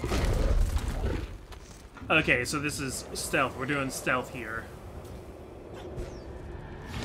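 Magic bursts crackle and whoosh.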